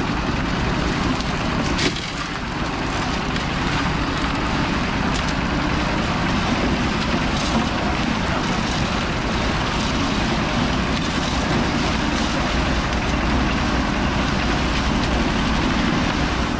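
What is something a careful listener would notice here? A concrete mixer drum churns and rumbles steadily.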